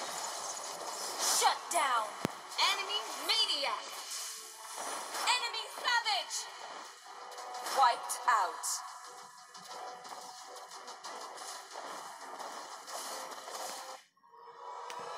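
Game battle effects whoosh, zap and clash rapidly.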